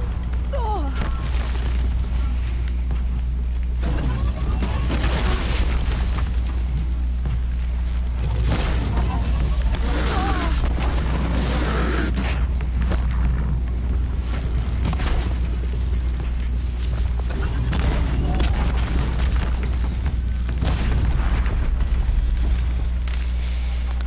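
Explosions and metallic crashes burst out again and again.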